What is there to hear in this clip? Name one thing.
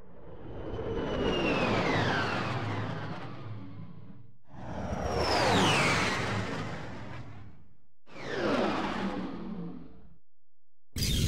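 A spaceship whooshes past with a falling, swooshing sweep.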